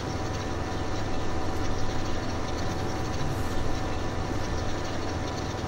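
A hay rake whirs as it turns.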